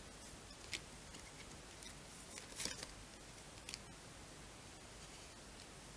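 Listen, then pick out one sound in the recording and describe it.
Playing cards are laid softly onto a cloth-covered table.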